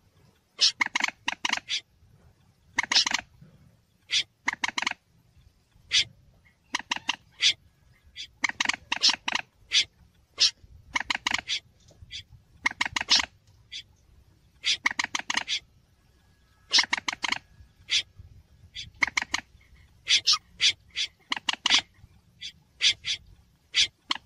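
A bird calls again and again in rapid bursts of sharp, rattling notes.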